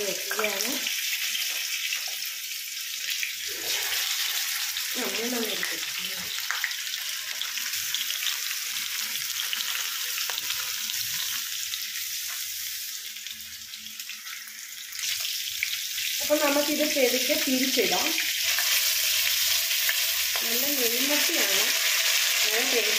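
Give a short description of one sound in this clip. Oil sizzles and crackles loudly in a frying pan.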